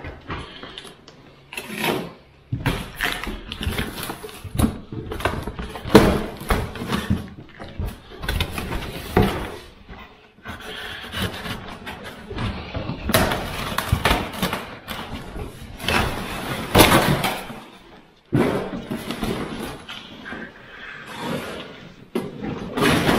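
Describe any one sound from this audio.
Cardboard rustles and scrapes as a box is opened and folded back.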